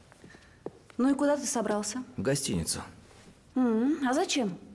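A woman speaks loudly and with emotion, close by.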